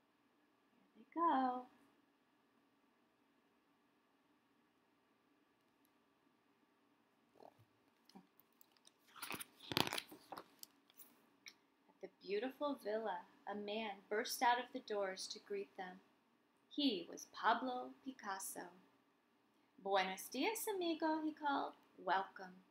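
A woman reads aloud calmly and expressively, close by.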